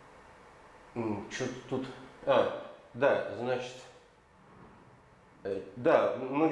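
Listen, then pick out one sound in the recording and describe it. An elderly man lectures calmly.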